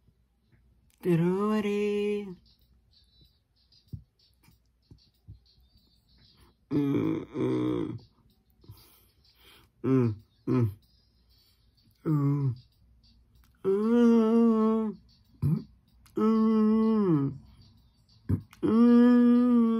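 A young man sings short, drawn-out phrases close to the microphone, with pauses between them.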